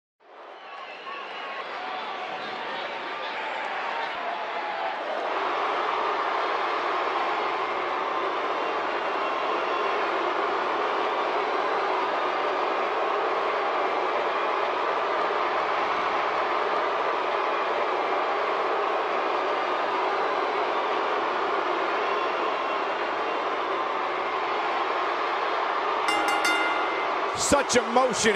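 A large arena crowd cheers and roars steadily, echoing through the hall.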